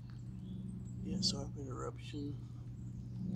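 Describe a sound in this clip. A man speaks briefly and casually close by.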